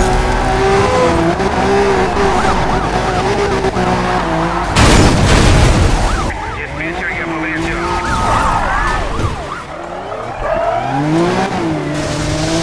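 A sports car engine roars and changes pitch as it revs up and down.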